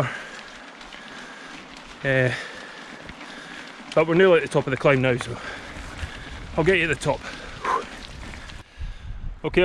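Bicycle tyres roll over a gravel track.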